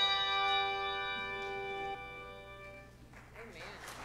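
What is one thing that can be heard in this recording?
Handbells ring a chord that slowly fades away.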